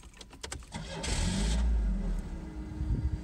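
A car engine cranks and starts.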